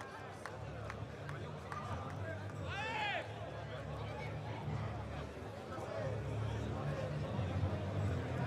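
A large stadium crowd murmurs and chatters in the open air.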